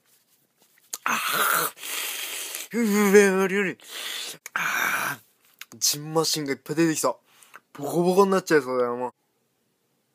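A young man groans and shouts wildly up close.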